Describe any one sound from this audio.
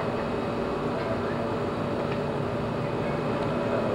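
Cars drive by on a street outdoors.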